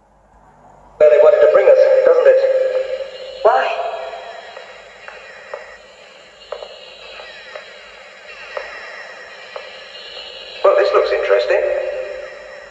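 Sound from a television plays through its small loudspeaker.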